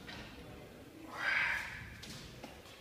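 A man exhales sharply.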